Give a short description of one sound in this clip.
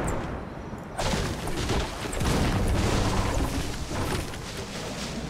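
A pickaxe chops at a tree stump with dull thuds.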